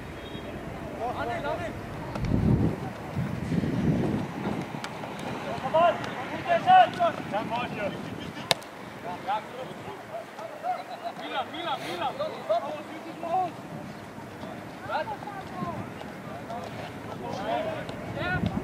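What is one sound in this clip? Teenage boys shout to each other across an open pitch outdoors.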